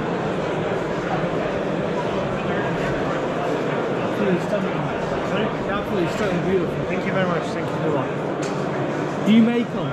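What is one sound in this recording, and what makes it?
A crowd murmurs steadily in a large hall.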